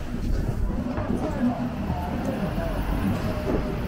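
A bus engine hums nearby.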